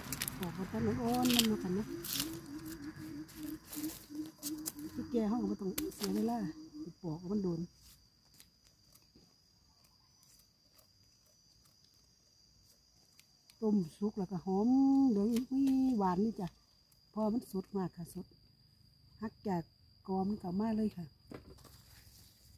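A knife scrapes and cuts through a fibrous plant stalk.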